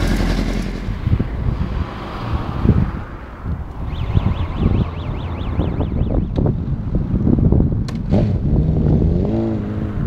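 A motorcycle engine revs hard in repeated bursts outdoors.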